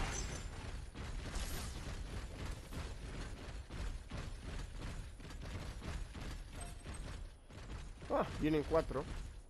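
Heavy metal footsteps thud quickly on stone.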